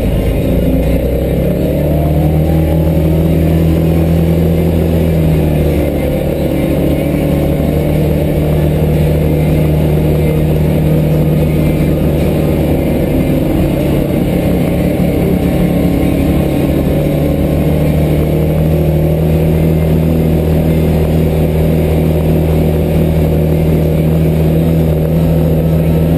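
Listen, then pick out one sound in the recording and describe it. A vehicle engine drones steadily from close by.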